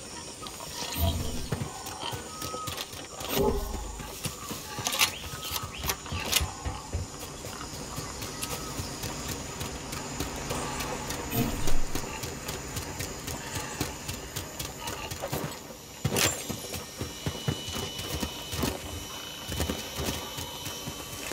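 Footsteps patter quickly over dirt and grass.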